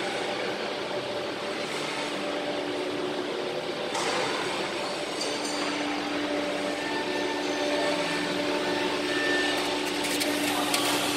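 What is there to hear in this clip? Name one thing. A machine hums and whirs steadily with a loud noisy drone.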